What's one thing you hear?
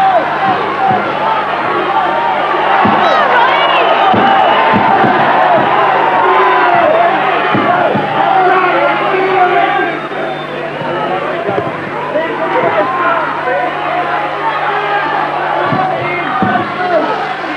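Punches thud against bodies and gloves.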